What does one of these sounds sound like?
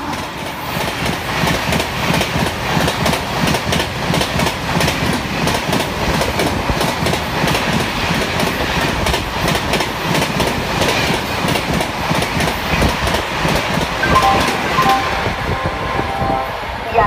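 A train rushes past close by with a loud, rattling roar.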